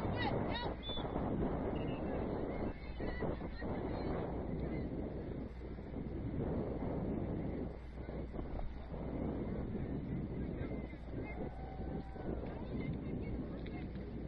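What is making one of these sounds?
Young women shout to each other in the distance.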